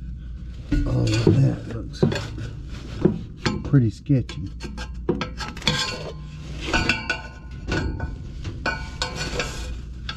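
A hand rubs and scrapes against a surface up close.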